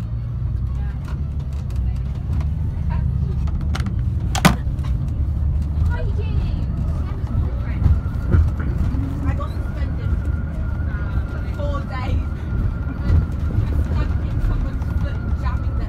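The bus interior rattles and knocks over the road.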